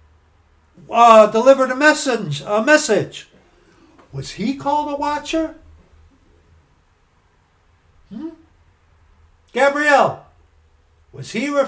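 A middle-aged man talks with animation into a nearby microphone, pausing between phrases.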